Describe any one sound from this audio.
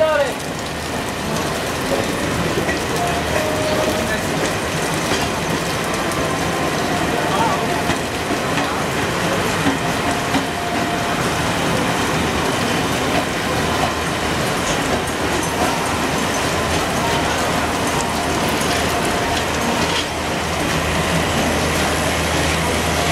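Wind rushes past an open train door.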